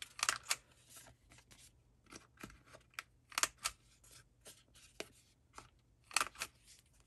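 A hand tool clicks sharply as it punches paper.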